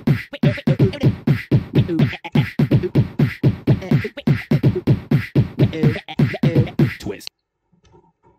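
Upbeat electronic music plays with a pounding beat.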